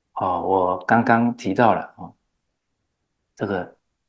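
An older man laughs softly.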